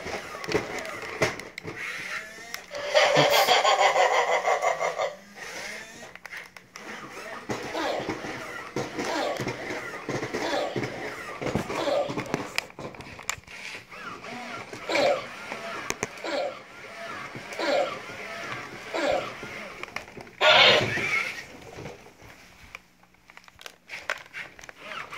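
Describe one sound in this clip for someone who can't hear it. A toy robot's motors whir and click as it walks.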